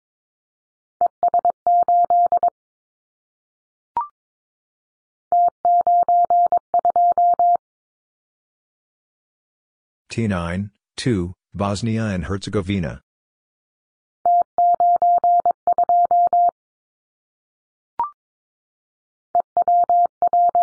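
Morse code beeps sound in quick bursts of short and long tones.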